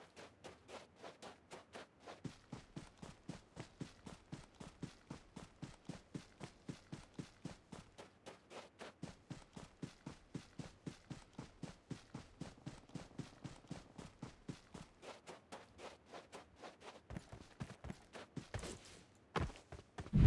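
Footsteps run quickly and evenly over grass and dirt.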